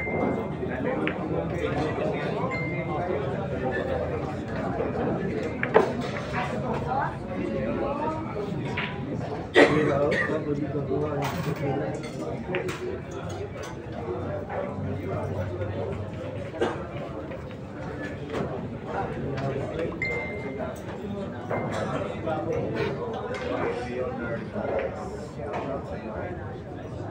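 A crowd of men and women murmurs and chats in the background.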